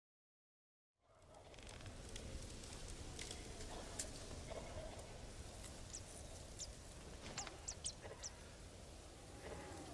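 Footsteps crunch through tall grass and ferns.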